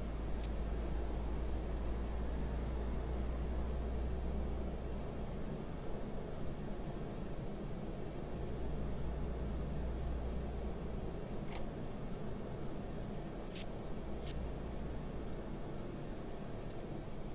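A bus engine hums low and steady while driving.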